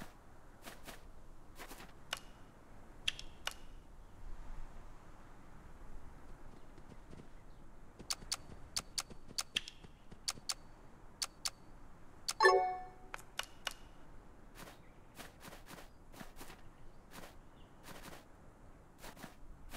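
Short interface clicks tick again and again.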